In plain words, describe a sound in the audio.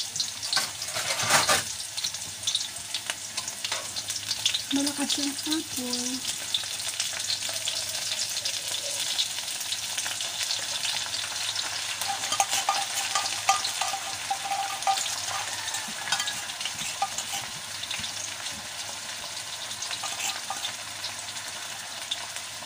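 Containers clink and tap as they are handled.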